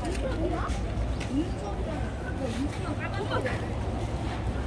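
Several women chat quietly nearby.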